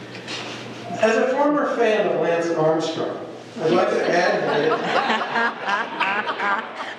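A man speaks calmly into a microphone over loudspeakers in a large echoing hall.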